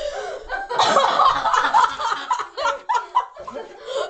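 A teenage boy laughs loudly.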